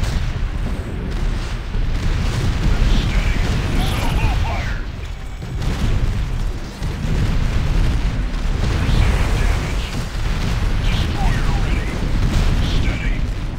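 Guns fire in quick bursts.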